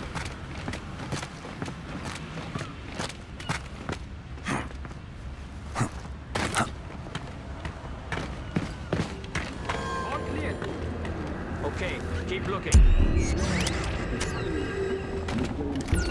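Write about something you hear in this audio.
Boots scuff and tap on stone.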